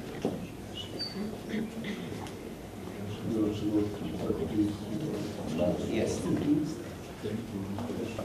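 A man chants a prayer.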